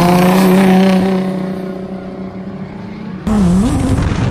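A car engine revs high as the car drifts past at a distance.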